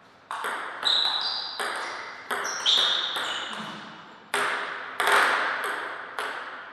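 A table tennis ball clicks sharply back and forth off paddles and the table in a quick rally, ringing in an echoing hall.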